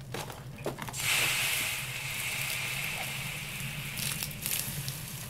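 Water pours from a kettle and hisses.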